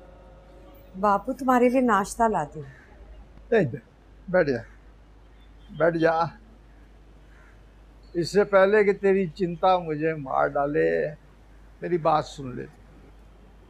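An elderly man speaks nearby with emotion, in a pleading voice.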